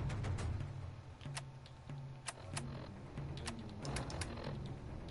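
Short electronic clicks tick as a menu is scrolled.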